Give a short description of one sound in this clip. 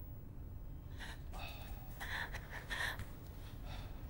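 Footsteps shuffle across a tiled floor.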